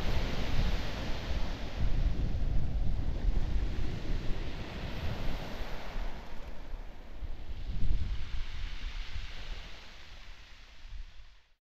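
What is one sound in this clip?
Small waves slosh and lap close by, with a muffled rumble from the water.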